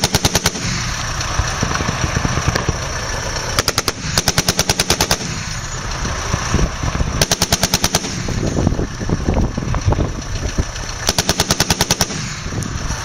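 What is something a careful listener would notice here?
A machine gun fires rapid bursts nearby.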